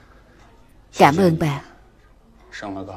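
A middle-aged man speaks calmly nearby.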